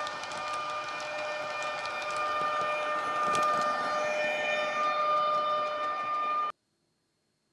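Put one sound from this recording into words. A small electric train whirs steadily past on the tracks.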